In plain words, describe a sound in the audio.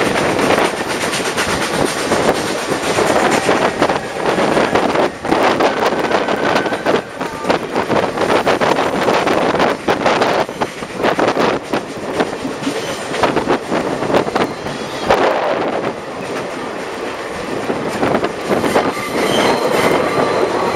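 Wind rushes past the open window of a moving train.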